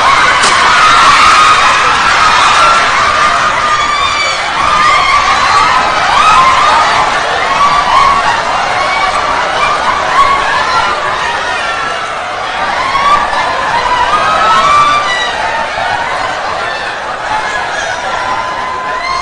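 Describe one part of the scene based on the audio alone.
Women talk loudly and with animation, heard from a distance in an echoing hall.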